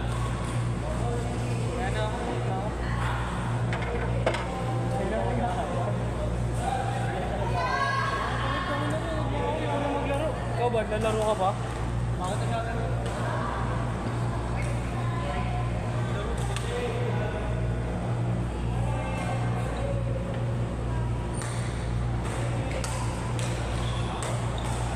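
Badminton rackets strike a shuttlecock with sharp pops.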